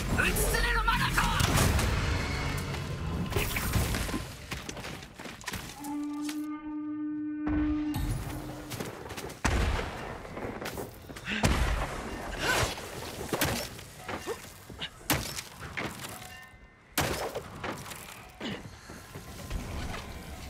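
Swords swish and clash in a fight.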